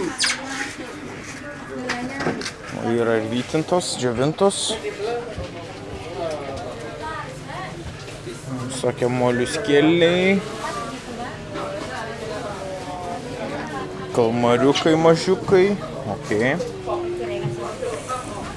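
Several men and women chatter around the recorder, with a busy, bustling sound.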